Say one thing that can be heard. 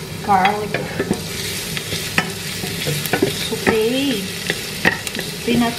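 A wooden spatula scrapes and taps against a metal pot.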